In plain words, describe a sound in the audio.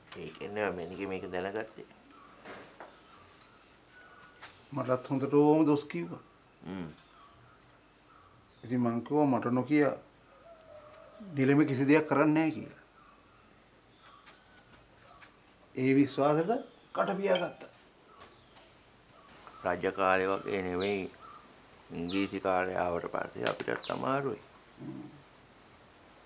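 A man speaks calmly and seriously nearby.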